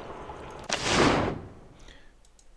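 A magic spell whooshes with a rushing burst.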